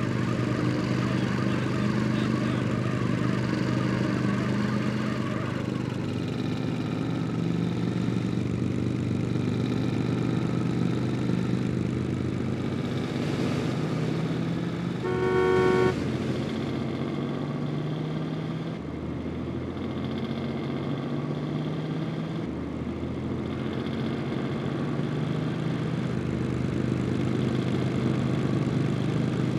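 A car engine idles and revs.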